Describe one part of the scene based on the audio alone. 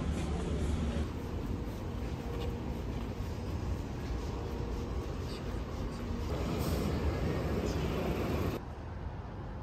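Traffic rumbles along a city street.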